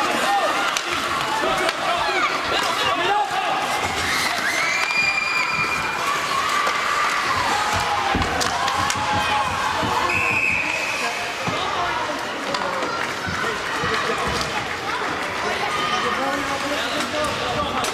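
Ice skates scrape and carve across ice in an echoing hall.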